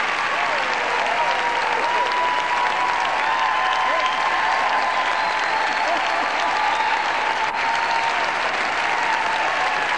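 A group of women sings together in a large echoing hall.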